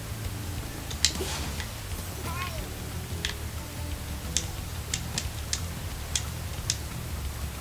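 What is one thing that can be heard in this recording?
Small chimes tinkle as gems are picked up.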